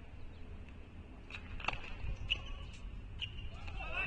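A tennis ball bounces on a hard court.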